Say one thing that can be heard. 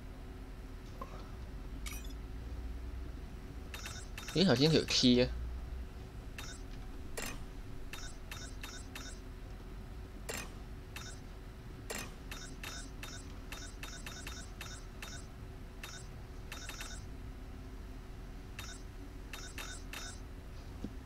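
Short menu clicks tick repeatedly as selections change.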